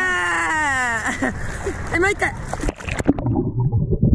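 Water splashes as a man swims through it.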